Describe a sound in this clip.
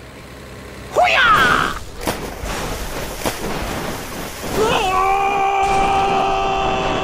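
Vehicles crash with loud metal impacts.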